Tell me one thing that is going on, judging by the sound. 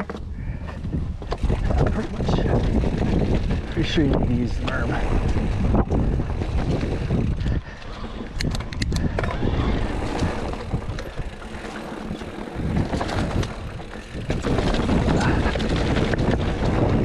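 Wind buffets the microphone as the bike rolls downhill.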